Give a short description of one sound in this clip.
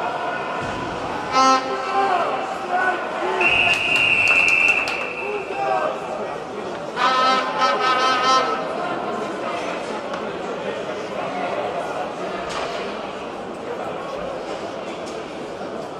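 A crowd of spectators cheers and chants in a large echoing arena.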